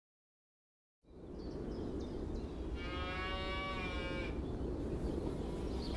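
Wind rustles through tall grass.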